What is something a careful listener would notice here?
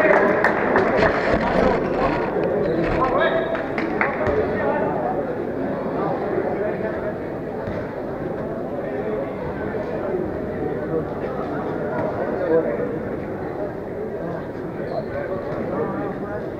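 Players' shoes squeak and thud on a hard court.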